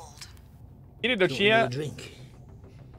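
An elderly man speaks quietly in a low voice.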